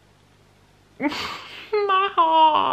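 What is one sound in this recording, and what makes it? A young woman laughs loudly close by.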